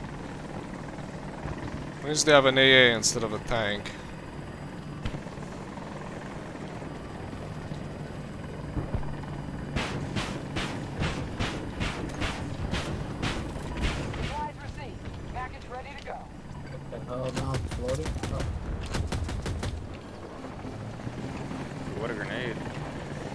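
A helicopter's engine and rotor drone steadily.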